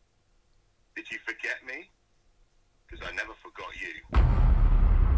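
A young man speaks tensely into a phone, close by.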